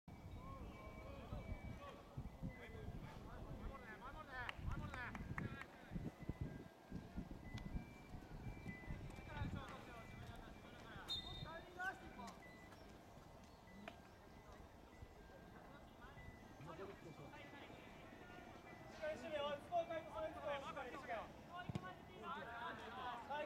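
Young players shout to each other across an open outdoor field.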